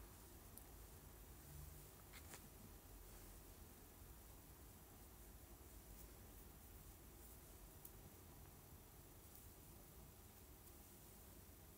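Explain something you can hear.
Fingers rustle softly through hair.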